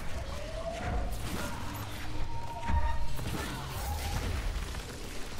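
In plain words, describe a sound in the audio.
Loud explosions boom and debris scatters.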